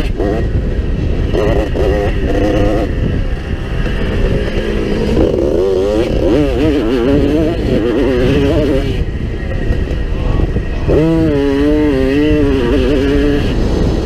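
Wind rushes past, loud and rumbling.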